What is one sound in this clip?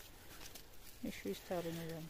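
A knife cuts through a mushroom stem.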